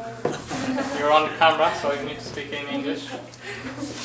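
Young men laugh loudly close by.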